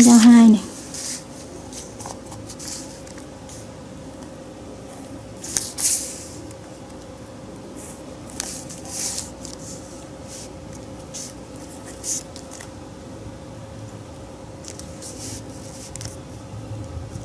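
A marker scratches and squeaks on paper.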